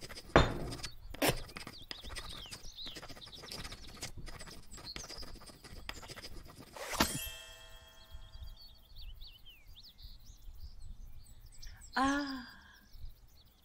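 A young woman talks through a microphone.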